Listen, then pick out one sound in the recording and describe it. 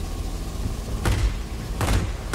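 Aircraft machine guns fire in short bursts.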